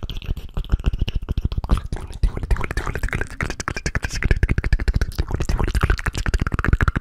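Fingers tap and rub rapidly on a microphone very close up.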